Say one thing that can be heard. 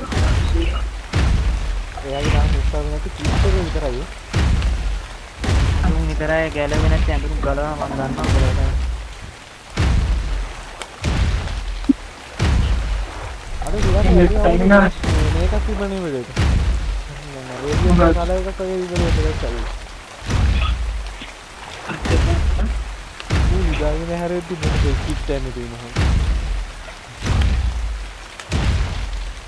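A large creature's heavy footsteps thud steadily through shallow water.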